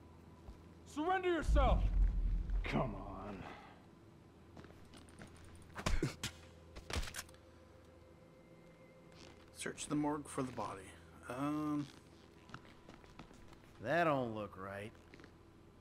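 A man speaks urgently nearby.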